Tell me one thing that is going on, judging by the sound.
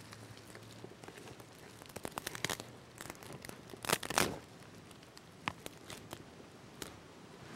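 Dry grass and twigs rustle and crackle in a man's hands.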